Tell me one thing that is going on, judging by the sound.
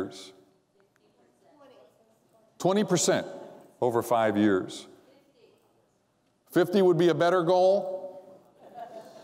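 A man speaks with animation through a microphone in a large echoing hall, pausing between phrases.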